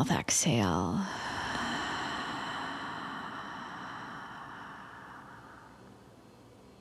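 A young woman breathes out slowly and audibly.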